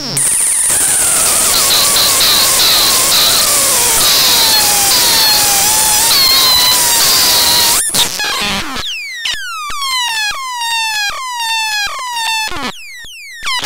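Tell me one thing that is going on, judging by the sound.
A synthesizer slider makes gliding, falling electronic pitches as it is moved.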